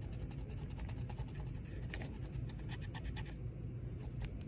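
A cotton swab rubs over a plastic model freight car.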